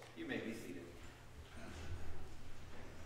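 A man speaks briefly through a microphone in a large echoing room.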